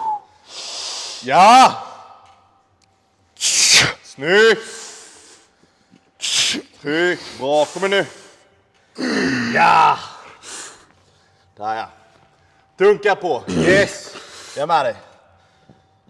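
A man grunts and strains loudly with effort, close by.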